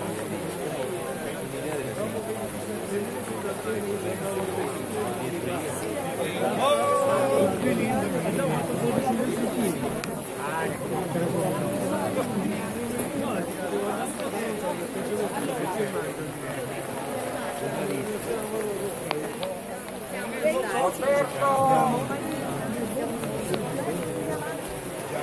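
Rain patters on umbrellas.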